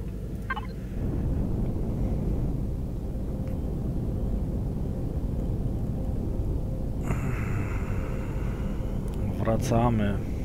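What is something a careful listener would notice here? A spacecraft engine rumbles steadily and deeply.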